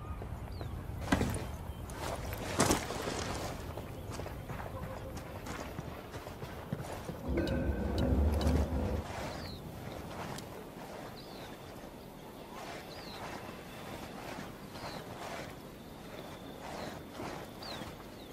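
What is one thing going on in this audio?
Footsteps crunch softly on dirt and grass.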